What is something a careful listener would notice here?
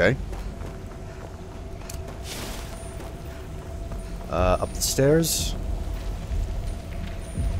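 A magical flame hums and crackles steadily.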